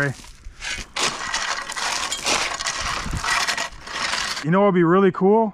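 A rake scrapes across loose dirt.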